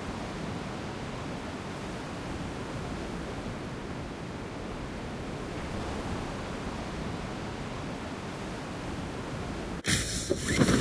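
Wind rushes steadily during a fall through the air.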